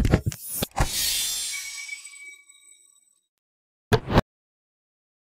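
Weapons clash and thud in a game battle.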